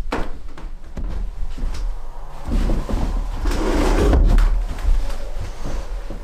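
A blanket rustles and flaps as it is shaken out.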